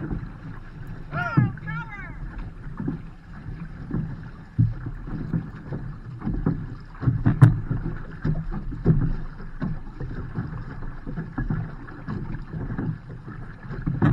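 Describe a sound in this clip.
Paddles dip and splash rhythmically in the water.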